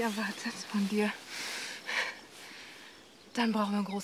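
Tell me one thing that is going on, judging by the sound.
A woman laughs happily.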